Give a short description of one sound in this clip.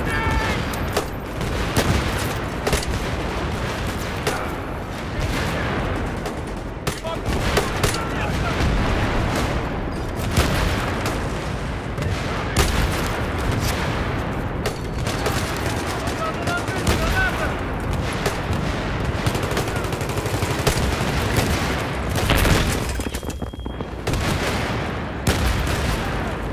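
Rapid gunfire bursts loudly and repeatedly.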